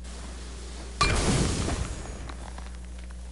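A blazing blade strikes ice with a sharp crackling burst.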